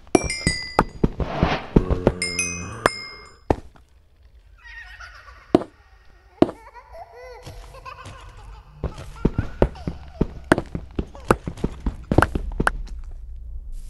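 A pickaxe breaks stone blocks with crunching knocks.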